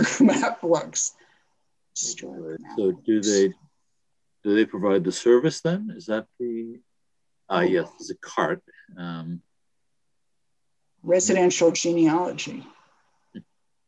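An elderly man talks calmly over an online call, with pauses.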